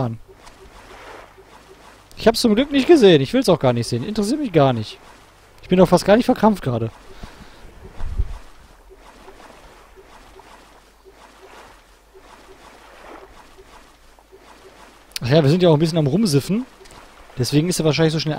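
Water laps gently against an inflatable raft.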